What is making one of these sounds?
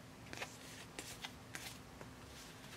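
Playing cards are shuffled and tapped together.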